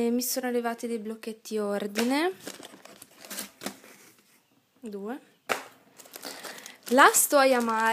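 Card paper rustles as it is handled close by.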